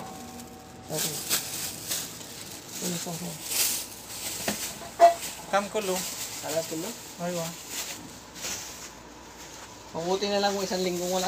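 A man talks nearby in a casual voice.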